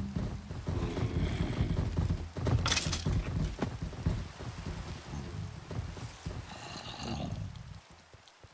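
Heavy blows thud against a creature's body.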